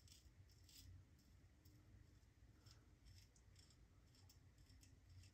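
A razor scrapes across stubble in short, repeated strokes.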